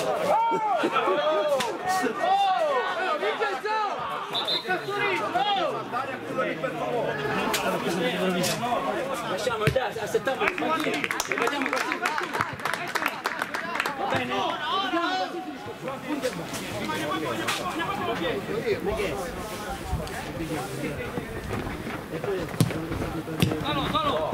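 Several men shout and call out across an open field outdoors.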